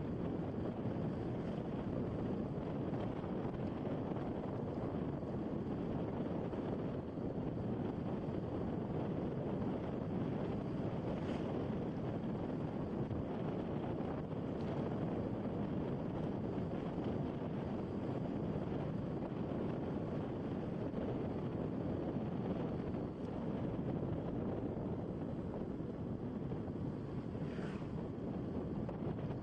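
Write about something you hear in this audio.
Wind rushes over the microphone.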